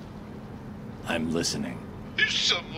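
A man answers calmly in a low, gruff voice.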